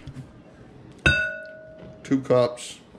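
A glass measuring cup clinks with a short ring.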